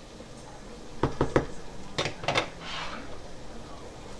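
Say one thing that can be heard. Liquid pours into a glass jar.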